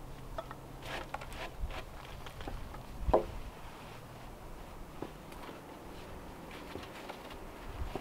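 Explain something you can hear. A man climbs down a wooden ladder.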